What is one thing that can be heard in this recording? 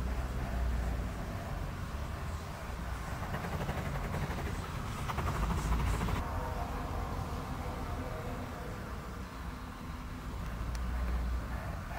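A steam locomotive chuffs in the distance.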